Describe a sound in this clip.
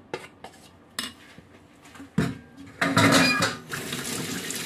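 A spoon stirs thick batter in a bowl with soft wet sounds.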